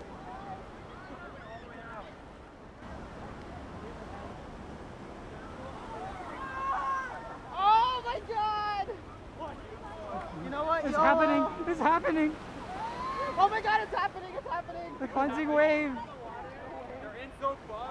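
Waves break and wash up on the shore.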